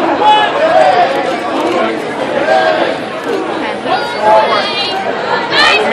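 A large crowd chatters and shouts loudly in a big echoing hall.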